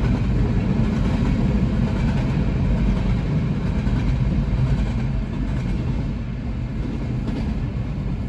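A freight train rumbles and clatters past nearby, heard from inside a car.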